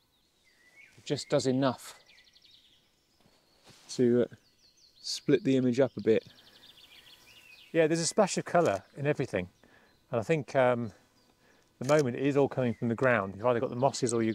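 A man speaks calmly outdoors nearby.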